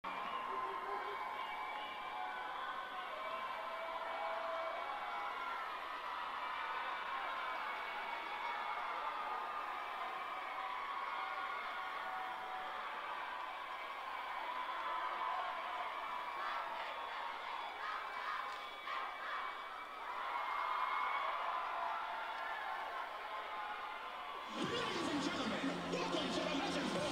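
A large crowd cheers and screams in a big echoing arena.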